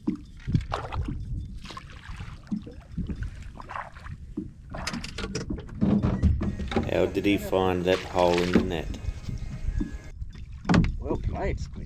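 A landing net splashes and swishes through shallow water.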